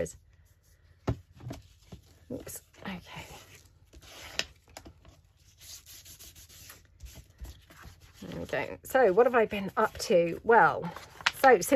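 Paper rustles and slides against a cutting mat.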